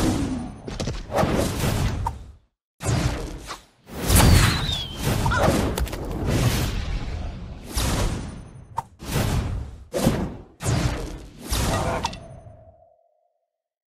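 Video game battle effects clash and burst with magic blasts.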